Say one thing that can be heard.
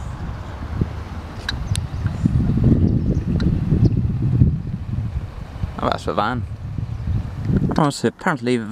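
Wind blows across the microphone outdoors.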